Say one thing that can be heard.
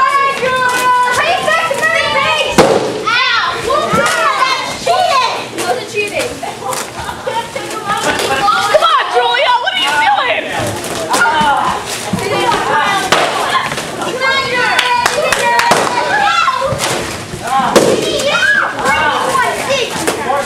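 Children shout and shriek with excitement in an echoing room.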